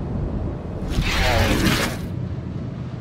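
A blade transforms with a loud metallic clank and whoosh.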